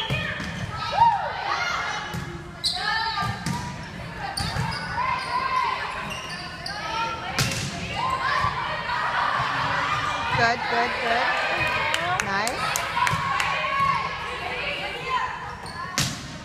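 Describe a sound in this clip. A volleyball is struck with sharp smacks in an echoing gym.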